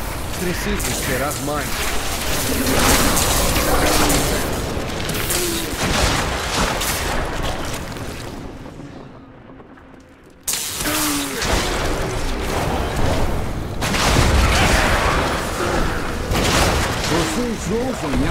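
Electric bolts crackle and zap in rapid bursts.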